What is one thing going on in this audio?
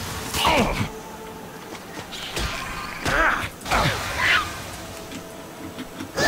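Sword strikes and magic spells whoosh and clash in a fight.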